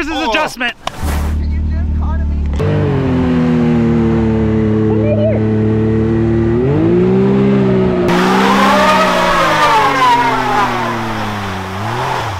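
An engine idles and revs loudly.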